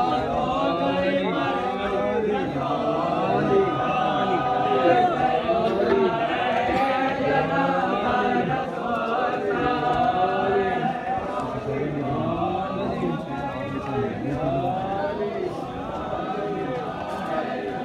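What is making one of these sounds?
A large crowd of men chant and call out together.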